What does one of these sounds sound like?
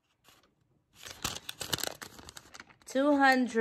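A paper receipt crinkles in a hand.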